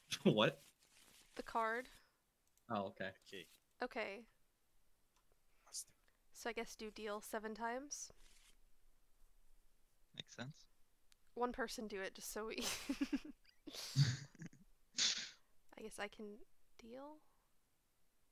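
A young woman talks with animation into a headset microphone, close up.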